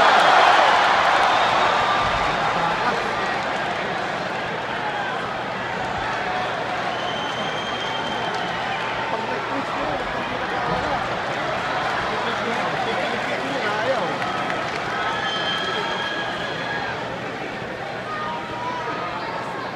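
A large arena crowd roars and cheers, echoing through a huge hall.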